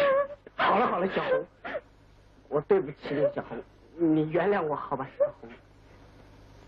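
A young man speaks urgently and with emotion.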